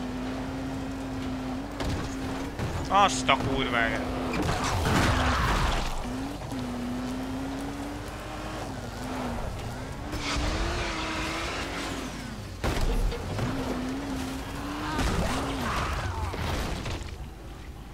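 A buggy engine hums steadily and revs up and down.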